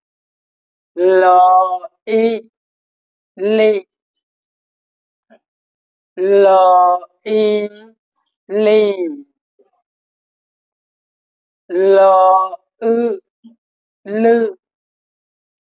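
A young man speaks slowly and clearly into a close microphone, reading out syllables with pauses between them.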